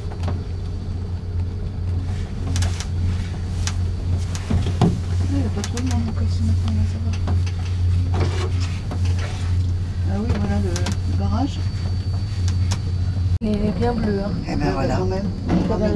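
A cable car cabin hums steadily as it glides along its cable.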